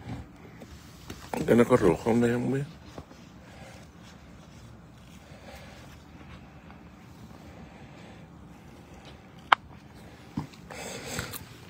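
Large leaves rustle softly as a hand brushes against them.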